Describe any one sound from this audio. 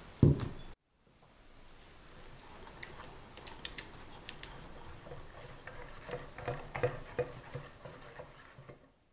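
A whisk scrapes and clinks against a pot while stirring.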